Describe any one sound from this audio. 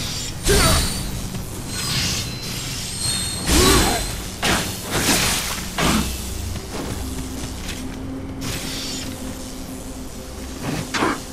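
Swords clash and slash in a fast fight.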